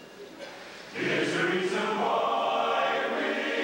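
A large choir sings together in a large hall.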